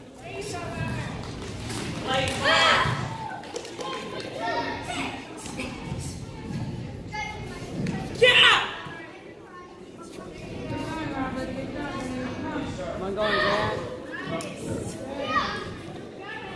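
Children and adults chatter quietly in the background.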